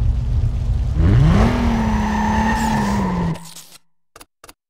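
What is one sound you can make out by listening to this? A car engine roars and revs as the car skids through a turn.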